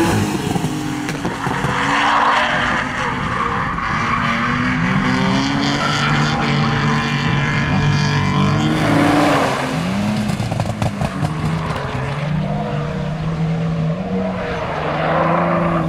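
Car tyres screech on asphalt.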